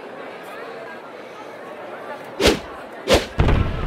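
A game card whooshes past with a sharp swoosh.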